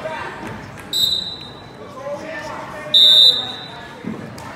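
A whistle blows sharply twice.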